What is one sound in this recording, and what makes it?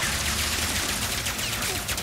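An energy beam hums and crackles loudly.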